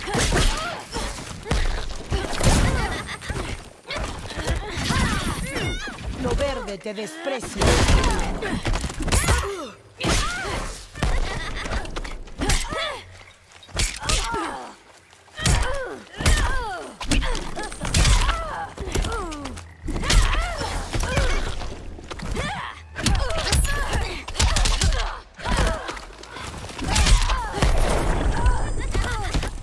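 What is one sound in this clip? Blows land with heavy thuds and bursts of effects in a video game fight.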